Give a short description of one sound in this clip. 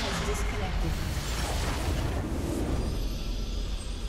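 Magical blasts crackle and burst in a video game.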